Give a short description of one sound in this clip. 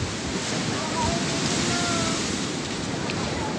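Waves crash and splash against a sea wall.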